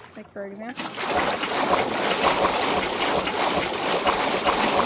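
Water splashes and rushes steadily.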